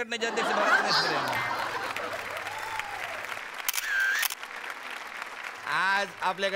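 A studio audience laughs loudly.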